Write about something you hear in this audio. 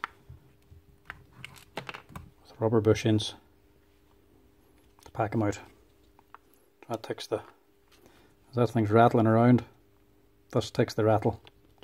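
Plastic parts click and knock as they are handled and fitted together.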